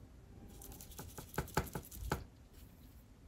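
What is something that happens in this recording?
A brush taps against a paint palette.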